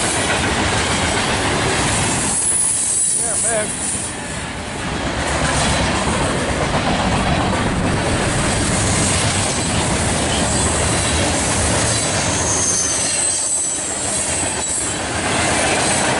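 A freight train rolls past close by, its wheels rumbling and clattering on the rails.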